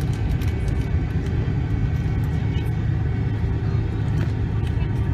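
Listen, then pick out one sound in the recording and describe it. Tyres rumble over the runway.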